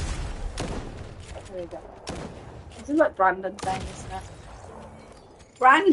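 Shotgun blasts ring out in short bursts.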